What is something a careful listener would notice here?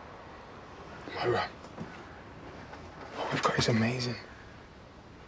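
A young man speaks quietly and earnestly close by.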